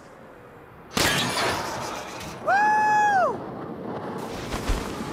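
Wind rushes loudly as a figure leaps into the air.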